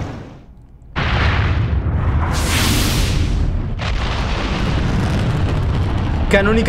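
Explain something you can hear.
A rumbling roar of fire and energy swells loudly.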